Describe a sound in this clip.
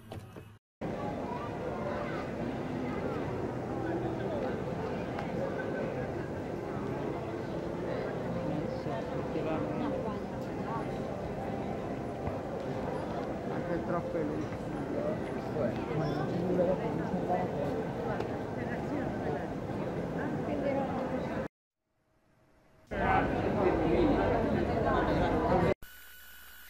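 A crowd of people chatters in a lively open square.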